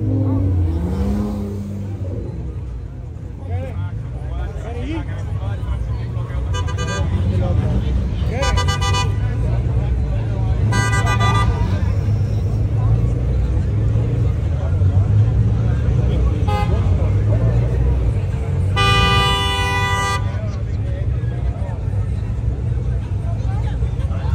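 Car engines rumble and rev as cars roll slowly past.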